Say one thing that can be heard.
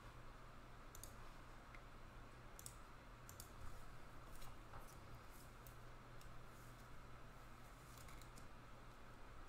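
Plastic card sleeves crinkle and rustle in someone's hands.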